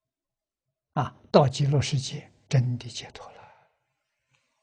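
An elderly man speaks calmly, close to a microphone.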